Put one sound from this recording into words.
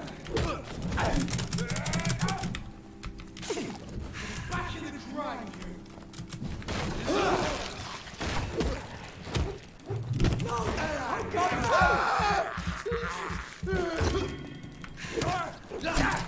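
Blows thud during a scuffle.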